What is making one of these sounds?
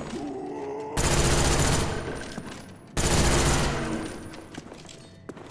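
A gun fires loud, booming shots that ring out.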